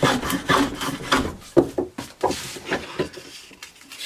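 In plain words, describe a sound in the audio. Pieces of wood knock and clatter against a wooden surface.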